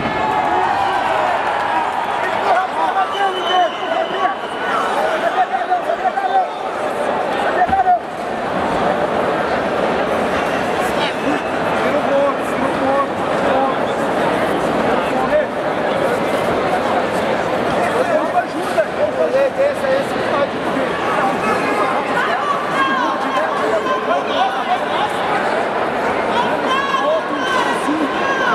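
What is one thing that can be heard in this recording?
A large crowd shouts and cheers in a big echoing arena.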